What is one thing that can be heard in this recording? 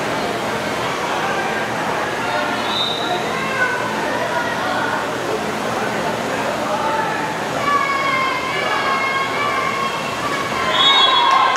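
Young people shout and call out across a large echoing hall.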